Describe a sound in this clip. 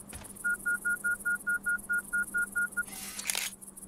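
An electronic detector beeps rapidly and evenly.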